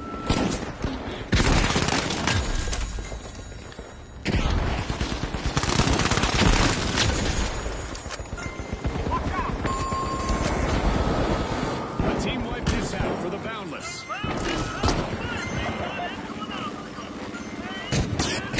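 Guns fire in rapid bursts with loud bangs.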